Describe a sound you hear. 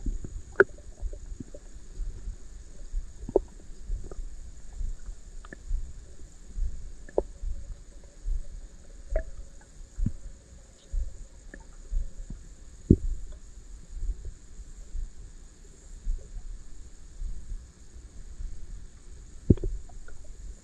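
Water rumbles and bumps with a muffled underwater sound.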